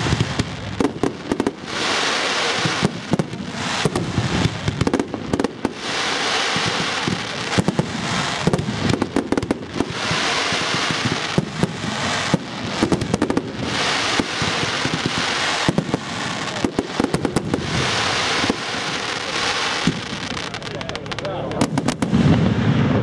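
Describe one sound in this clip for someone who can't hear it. Fireworks bang and crackle overhead in rapid bursts.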